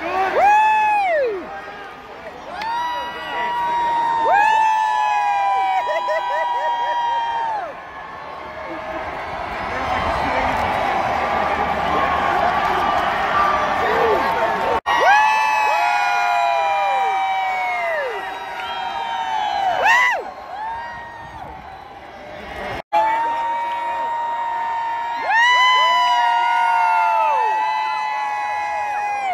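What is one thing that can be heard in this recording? Young women nearby whoop loudly with high voices.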